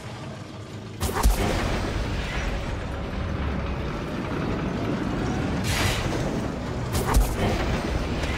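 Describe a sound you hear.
Wind roars loudly.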